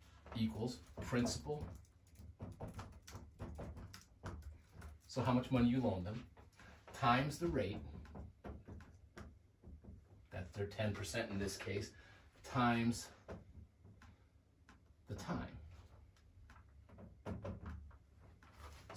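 A man speaks calmly and clearly nearby, explaining as he goes.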